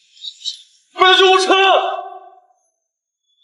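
A young man shouts in distress.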